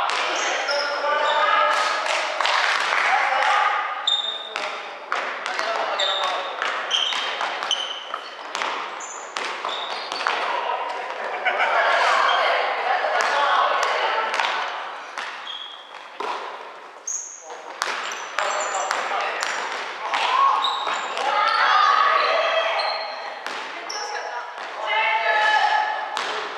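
A basketball bounces in a large echoing hall.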